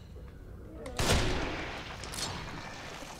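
A rifle shot cracks and echoes.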